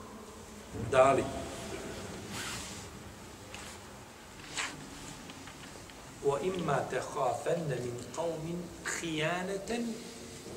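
A middle-aged man speaks calmly and slowly, close to a microphone.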